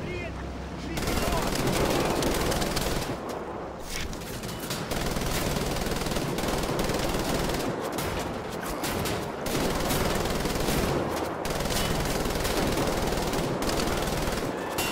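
A heavy machine gun fires in long, rapid bursts.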